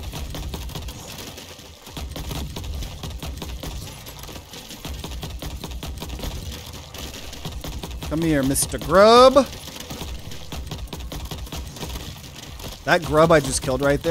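Game weapons fire in rapid blasts.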